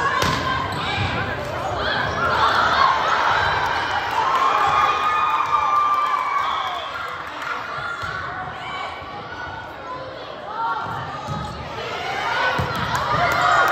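A volleyball is hit with a sharp slap.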